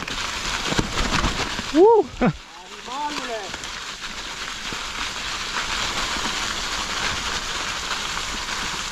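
Bicycle tyres roll and crunch over dry fallen leaves.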